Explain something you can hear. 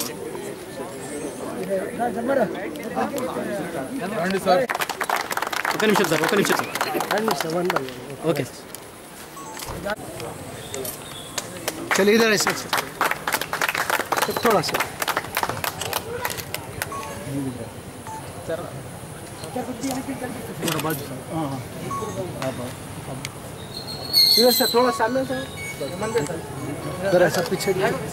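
A crowd of men talk and call out together outdoors.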